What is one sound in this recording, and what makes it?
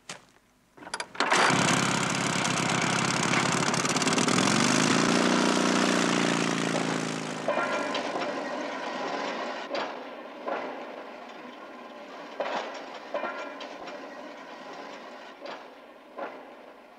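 The engine of a small motor railway trolley starts up and runs.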